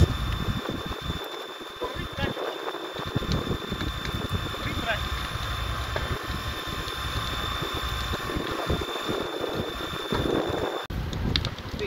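A fire hose sprays water with a steady hiss.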